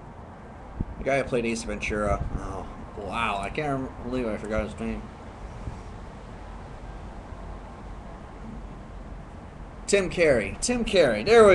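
A man speaks casually, close to a microphone.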